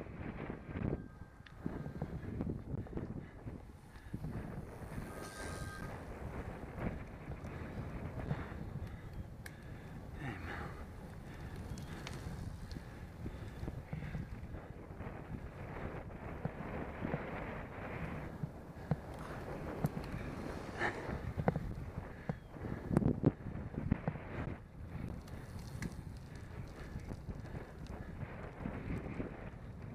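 Wind rushes and buffets loudly past a moving bicycle.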